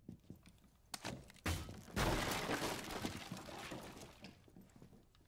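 A wooden barricade is smashed apart.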